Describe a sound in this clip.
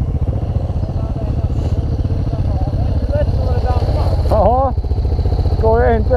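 A second motorcycle approaches and pulls up close.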